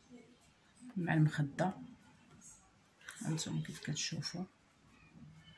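Fabric rustles and crinkles as hands handle it close by.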